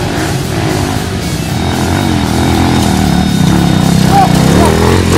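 A dirt bike engine roars loudly as it climbs closer.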